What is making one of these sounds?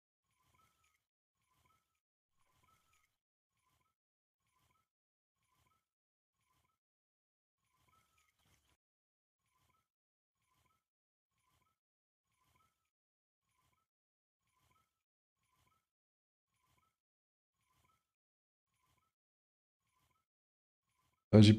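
A fishing reel clicks softly and steadily as it is wound in.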